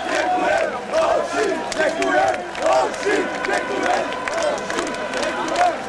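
A crowd of men sings and chants loudly nearby.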